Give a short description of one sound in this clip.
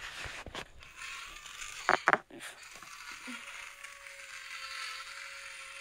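A toy drill whirs with a steady buzz.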